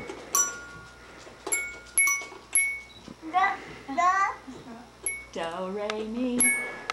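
A toy keyboard plays short bright electronic notes.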